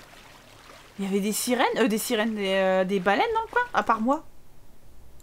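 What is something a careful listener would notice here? A young woman talks animatedly into a close microphone.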